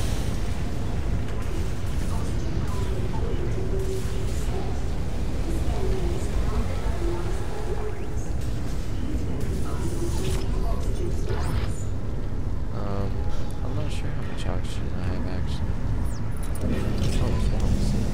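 Heavy armoured footsteps clank on a metal floor.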